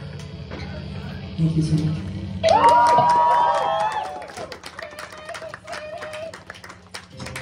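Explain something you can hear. A crowd of young people cheers and whoops.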